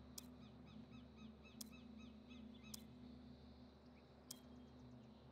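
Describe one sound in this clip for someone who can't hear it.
A short sharp click sounds several times.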